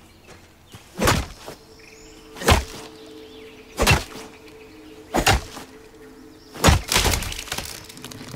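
An axe chops into a tree trunk with heavy thuds.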